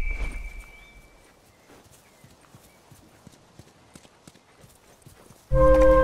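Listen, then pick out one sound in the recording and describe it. Footsteps crunch softly on grass and gravel.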